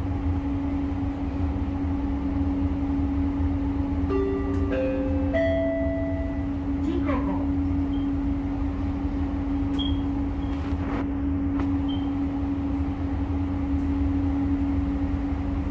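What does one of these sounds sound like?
A train rumbles and hums steadily along a track.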